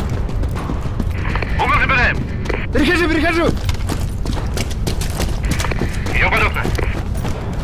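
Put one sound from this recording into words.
Boots run over rough ground.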